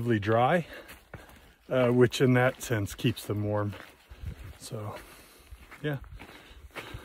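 A man talks calmly, close to a microphone.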